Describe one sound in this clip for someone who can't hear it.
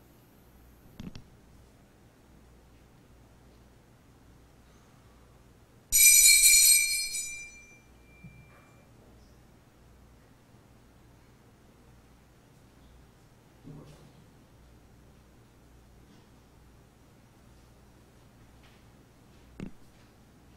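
Metal and glass vessels clink softly on a table.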